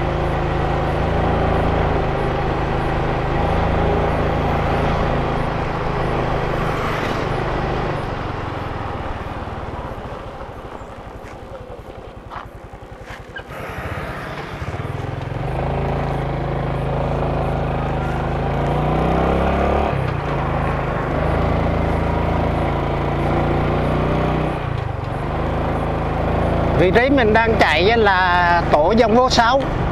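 Wind rushes past while riding.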